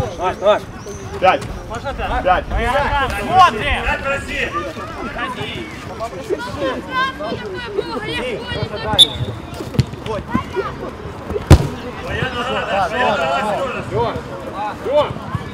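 Young men shout and call out to each other outdoors.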